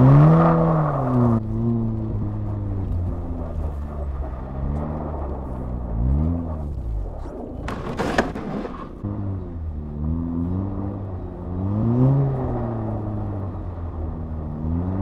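Tyres crunch and hiss over packed snow.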